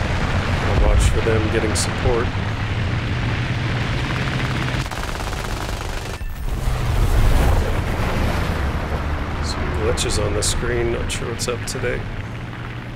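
Machine guns fire in short rapid bursts.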